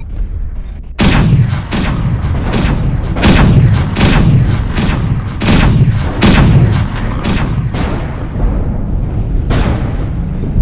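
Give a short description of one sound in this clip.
Laser weapons fire in rapid bursts with sharp zaps.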